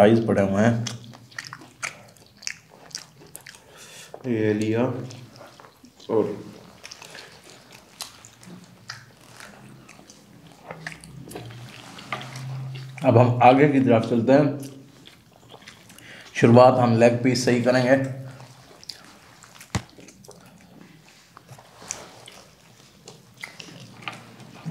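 Crispy fried chicken crunches as it is bitten and chewed.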